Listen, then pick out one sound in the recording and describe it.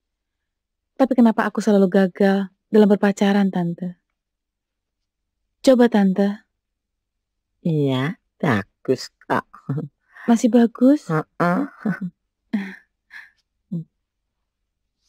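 An older woman speaks softly and calmly.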